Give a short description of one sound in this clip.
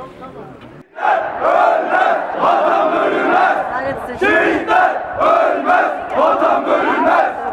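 A crowd of men chants slogans loudly in unison.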